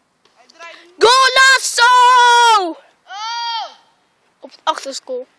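A young boy shouts loudly and at length.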